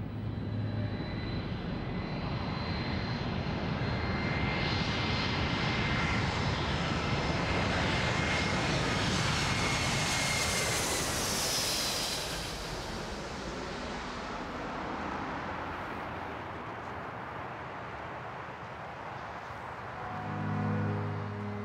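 Wind rushes through tree leaves outdoors.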